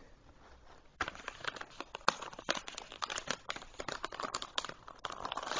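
Wrapping paper crinkles and rustles.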